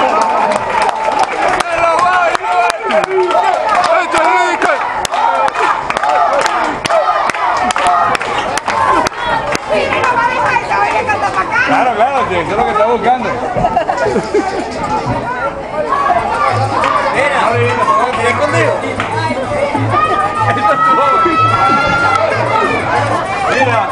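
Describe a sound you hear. A crowd of adults and children talks and laughs loudly all around.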